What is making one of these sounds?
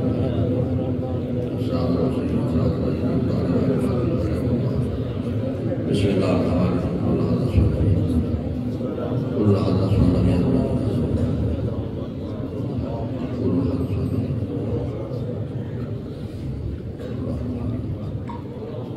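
An elderly man speaks calmly into a microphone, heard through a loudspeaker in an echoing hall.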